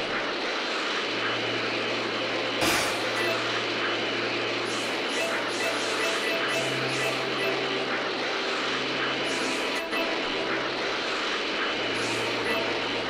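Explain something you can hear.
A powerful energy aura roars steadily while rushing through the air.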